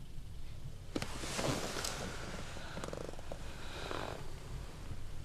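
A young man whispers close by.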